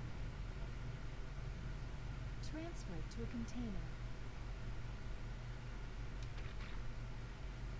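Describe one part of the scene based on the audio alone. Wet flesh squelches softly as it is handled.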